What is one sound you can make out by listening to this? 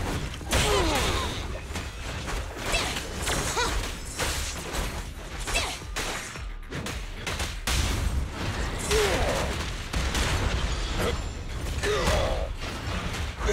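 Sword slashes and heavy blows land in quick bursts.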